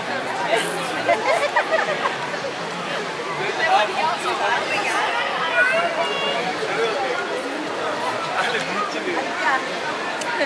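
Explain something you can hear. A crowd chatters and laughs outdoors.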